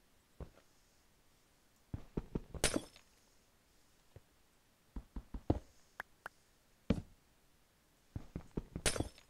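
A pickaxe chips at blocks of ice with quick taps.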